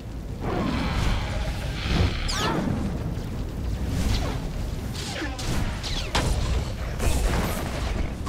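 Energy blasts burst with a whoosh.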